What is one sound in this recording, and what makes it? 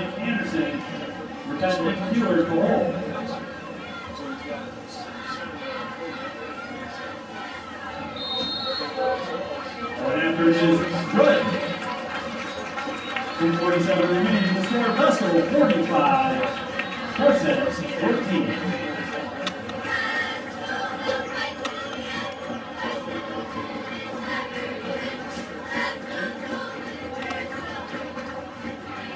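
A crowd cheers and shouts across an open stadium.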